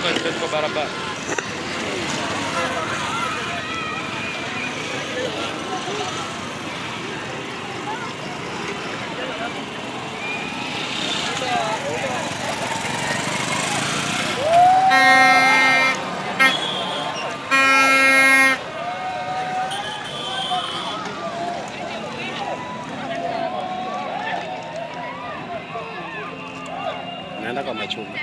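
A crowd of people talk and shout outdoors nearby.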